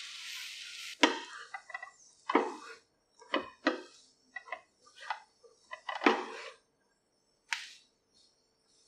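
Utensils scrape and clack against a frying pan while noodles are tossed.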